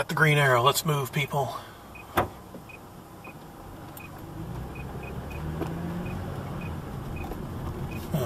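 A car engine idles with a low hum and swells as the car starts moving.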